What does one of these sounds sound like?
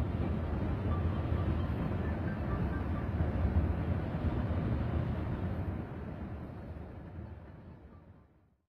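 A bus engine rumbles steadily, then fades away.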